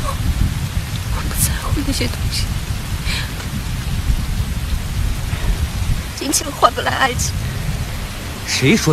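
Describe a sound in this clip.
A young woman speaks quietly up close.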